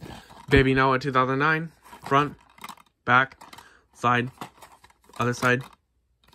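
Plastic cases clack softly as they are handled.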